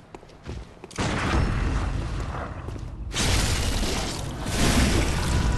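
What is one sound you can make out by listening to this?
A huge beast roars.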